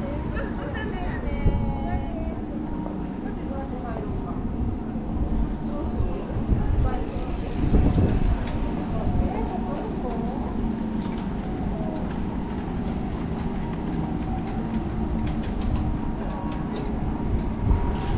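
Street noise hums steadily outdoors.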